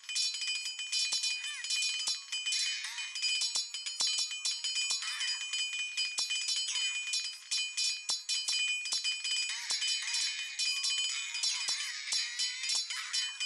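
Swords clash and clang repeatedly in a battle.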